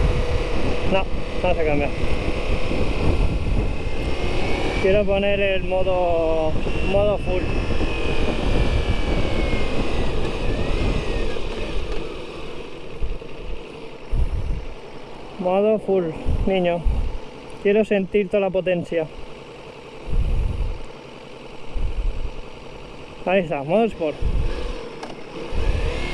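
Wind buffets loudly against a moving motorcycle.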